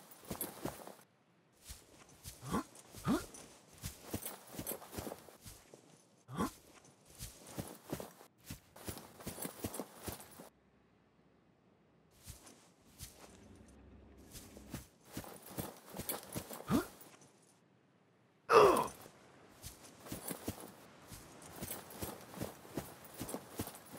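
Footsteps crunch on grass and rock.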